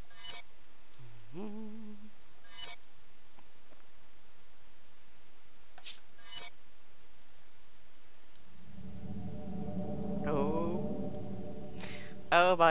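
A young woman speaks briefly into a close microphone.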